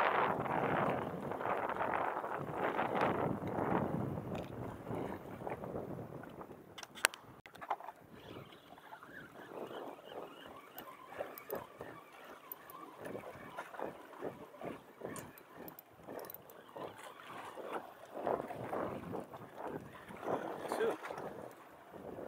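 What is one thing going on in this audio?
Small waves lap and splash against rocks.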